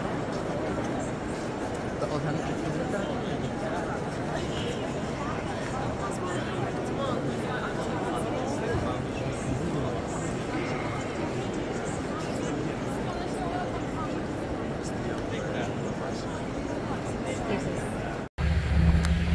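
A crowd of visitors murmurs and chatters in a large echoing hall.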